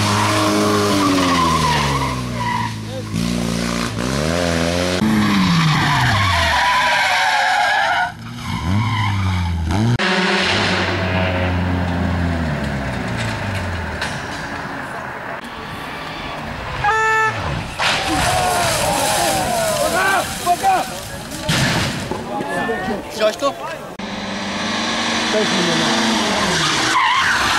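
Rally car engines rev hard and roar past, rising and falling in pitch.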